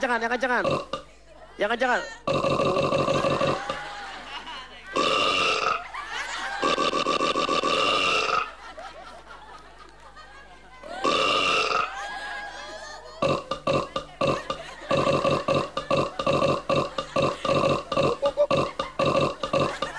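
Young women laugh nearby.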